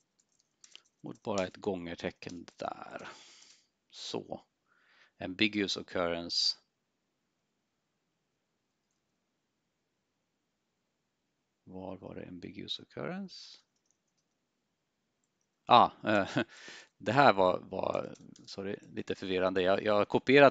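A man speaks calmly into a close headset microphone, in bursts with pauses.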